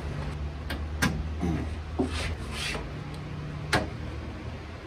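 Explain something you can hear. Metal parts knock and clink as they are handled.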